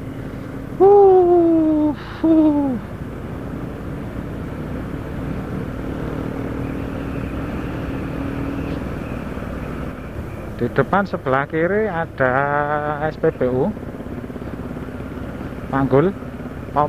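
A motorbike engine hums steadily as it rides along a road.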